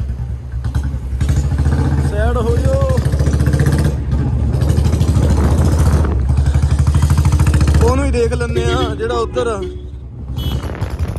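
A motorcycle engine putters steadily close by.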